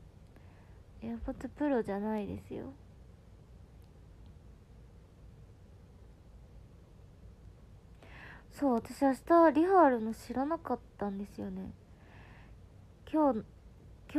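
A young woman speaks softly and close by, her voice muffled behind her hand.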